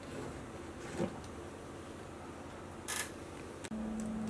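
A plastic gear mechanism clicks softly as a crank handle is turned by hand.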